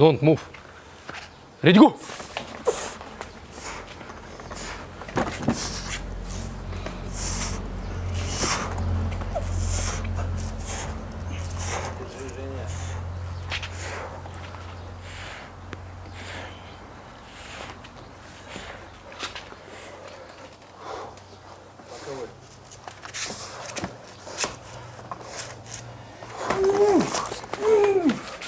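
Two men grunt and strain up close.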